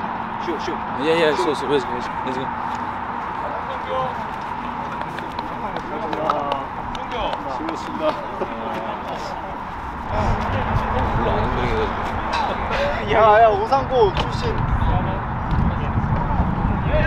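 Young men talk and call out to each other outdoors.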